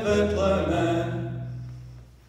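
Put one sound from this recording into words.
A young man sings into a microphone in a large echoing room.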